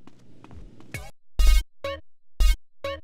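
Menu clicks and chimes sound.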